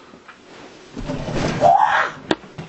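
A body thuds onto a floor.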